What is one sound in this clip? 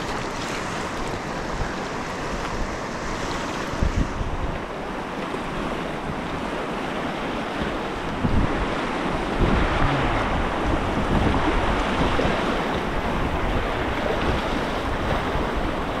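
Rapids rush and churn loudly all around.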